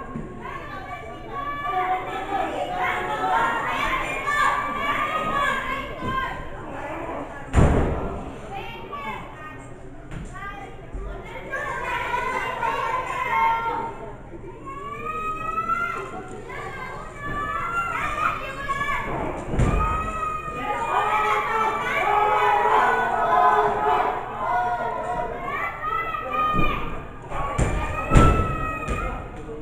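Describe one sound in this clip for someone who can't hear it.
A crowd of men and women shouts and cheers close by in an echoing hall.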